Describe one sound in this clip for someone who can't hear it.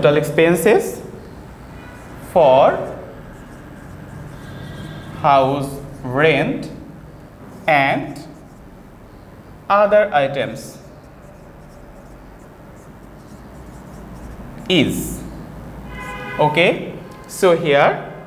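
A man speaks slowly and clearly nearby, pausing between phrases.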